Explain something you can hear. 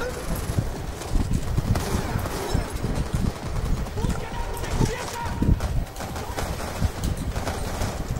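Gunshots fire in quick bursts, with dull thumps.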